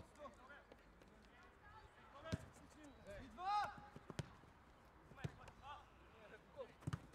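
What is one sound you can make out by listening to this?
Young men shout to each other outdoors during a football game.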